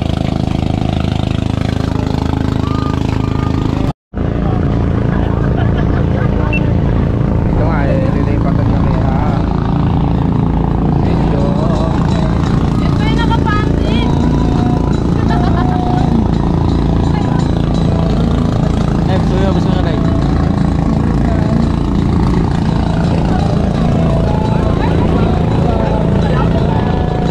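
A boat engine drones steadily nearby.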